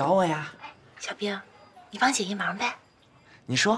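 A young woman speaks sweetly and coaxingly nearby.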